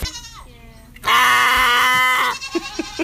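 A goat bleats loudly.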